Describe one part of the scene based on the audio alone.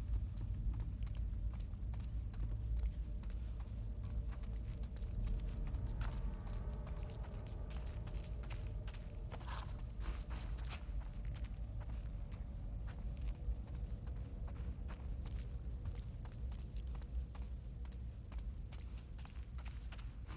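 Footsteps tread slowly across a hard floor.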